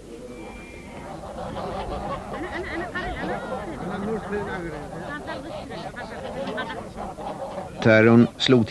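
A flock of geese honks and cackles outdoors.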